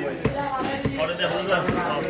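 A knife scrapes scales from a fish.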